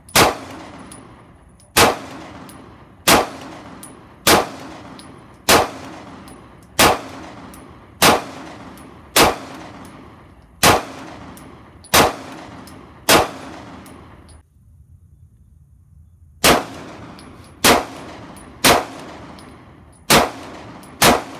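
A pistol fires shot after shot, each bang ringing out outdoors.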